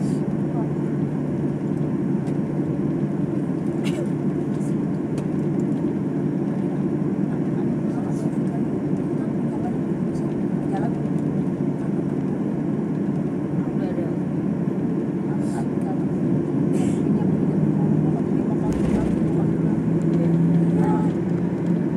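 Aircraft wheels rumble along the runway.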